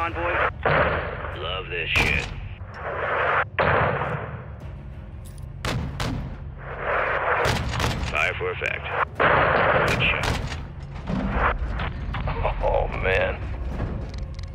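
Heavy explosions boom and rumble one after another.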